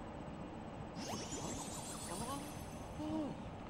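A bright, sparkling chime rises and shimmers.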